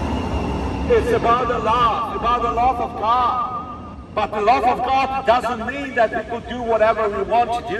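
A middle-aged man preaches loudly through a headset microphone and loudspeaker outdoors.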